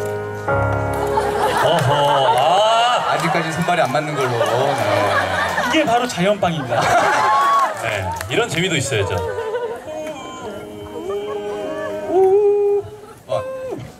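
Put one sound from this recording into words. Young men sing together through microphones.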